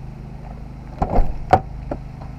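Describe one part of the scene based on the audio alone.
A car door handle clicks.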